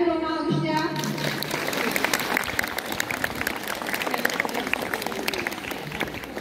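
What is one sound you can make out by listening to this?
A crowd applauds and claps.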